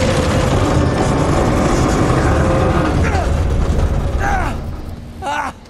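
A heavy train car grinds and crashes down a rocky slope with a loud rumble.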